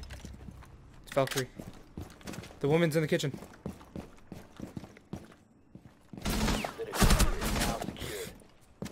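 Footsteps thud on hard stairs and floor.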